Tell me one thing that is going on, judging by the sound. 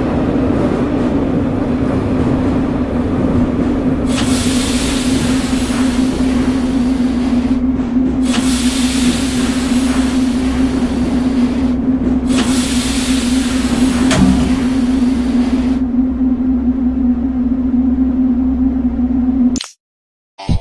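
A subway train's electric motor hums steadily as the train slows in a tunnel.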